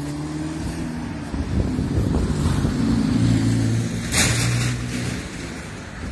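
A small truck engine rumbles as it drives past close by.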